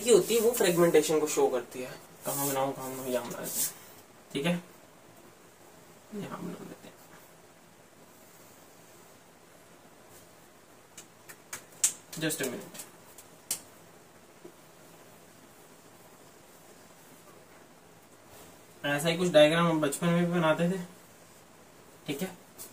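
A young man speaks calmly and explains, close to the microphone.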